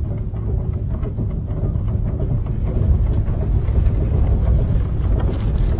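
A large rock tumbles down with a deep rumble.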